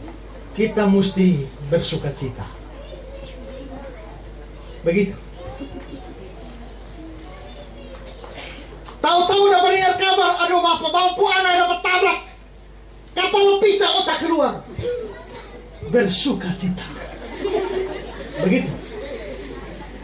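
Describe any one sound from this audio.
A man preaches with animation into a microphone, heard through loudspeakers.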